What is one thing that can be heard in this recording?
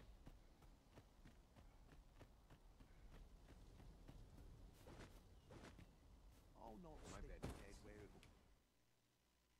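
Footsteps run over ground.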